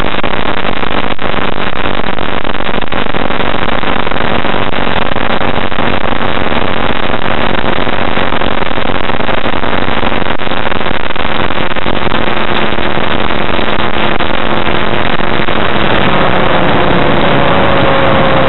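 A small aircraft engine drones loudly and steadily.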